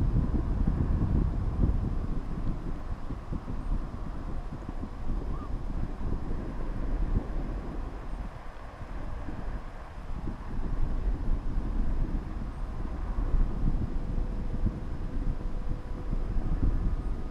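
Small electric motors whine steadily.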